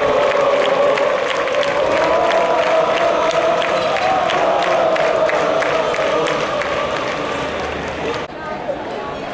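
A large crowd chants loudly in unison.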